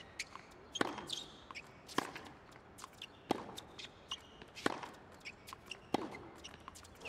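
Tennis rackets strike a ball back and forth in a steady rally.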